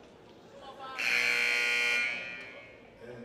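A referee blows a sharp whistle in a large echoing gym.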